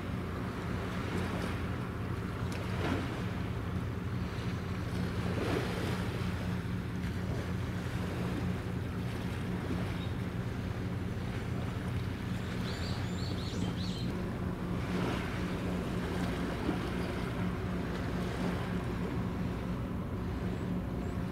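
A large ship's engine drones steadily across the water.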